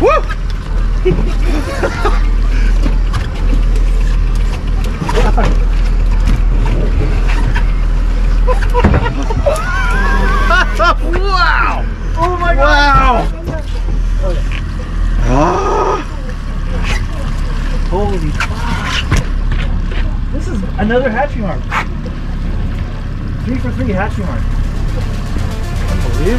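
A boat's outboard motor hums at idle.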